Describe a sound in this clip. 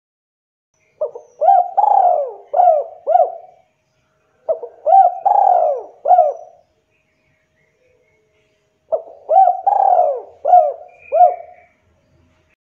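A spotted dove coos in phrases that repeat, with pauses between them.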